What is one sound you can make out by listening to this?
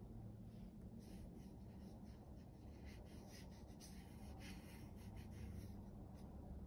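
A paintbrush brushes across watercolor paper.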